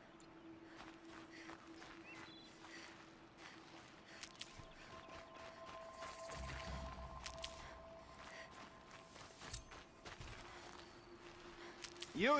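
Footsteps rustle through dry grass.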